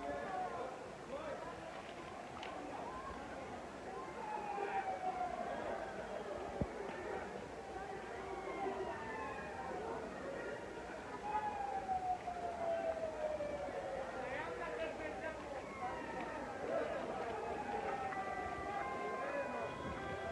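A large crowd of young men and women chatters and shouts outdoors.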